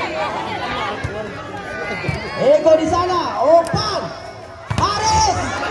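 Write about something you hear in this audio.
A volleyball is struck with sharp smacks.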